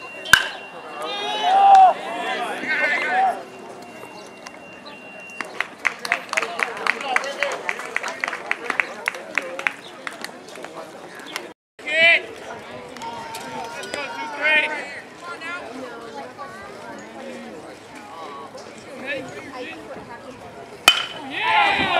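A metal bat cracks sharply against a baseball.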